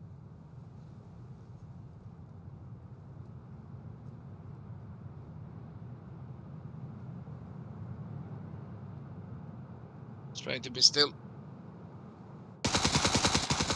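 Wind blows softly outdoors through an open window.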